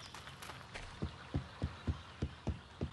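Footsteps thud on a wooden bridge.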